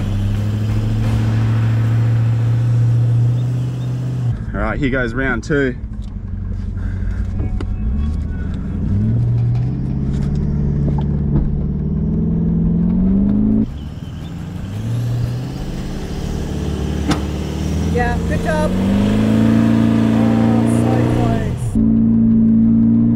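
A vehicle engine revs hard, rising and falling in pitch.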